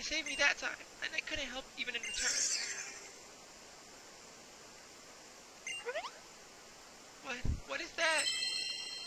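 A young man talks casually into a headset microphone.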